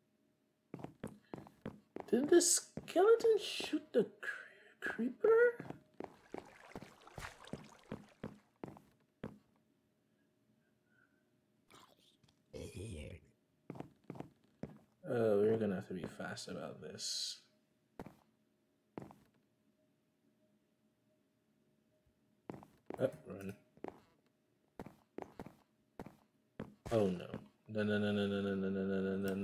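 Footsteps tap on wooden planks.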